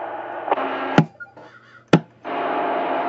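A radio clicks sharply as it switches between sending and receiving.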